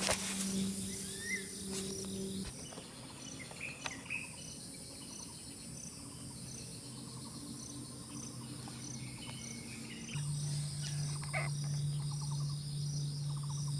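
Grass rustles softly as a snake slides through it.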